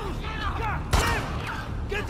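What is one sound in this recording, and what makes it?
A pistol fires a sharp shot with a short echo.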